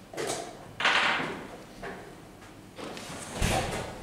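A chess piece clacks onto a wooden board.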